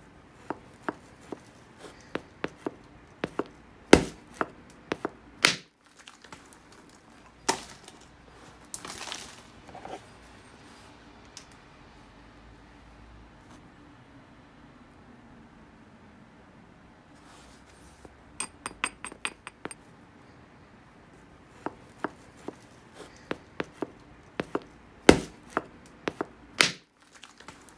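An antler strikes stone with sharp clicking knocks.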